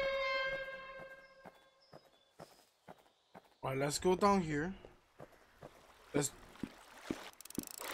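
Footsteps tap steadily as a game character walks.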